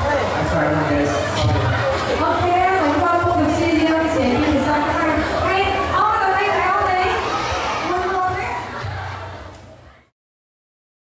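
A young man speaks through a microphone over loudspeakers.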